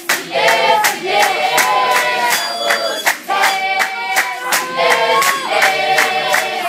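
A choir of young women and girls sings loudly together.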